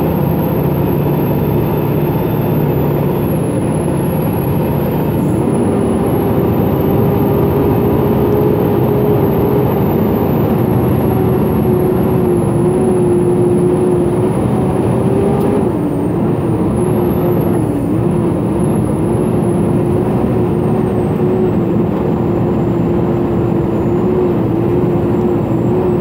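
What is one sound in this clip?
A truck engine hums and drones steadily from inside the cab.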